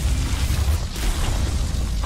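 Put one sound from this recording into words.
An energy blast crackles and booms.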